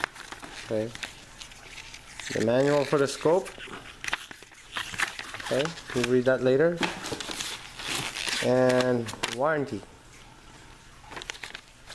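Paper leaflets rustle as they are handled.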